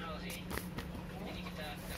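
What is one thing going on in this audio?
Paper rustles close by in a hand.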